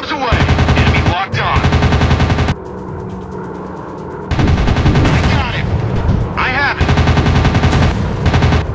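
Aircraft machine guns fire in rapid bursts.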